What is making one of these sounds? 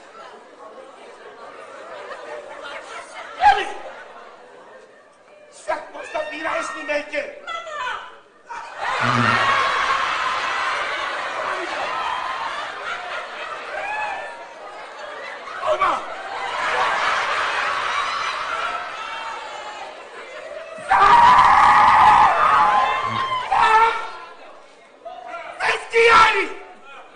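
A crowd of people shouts and cheers in a large echoing hall.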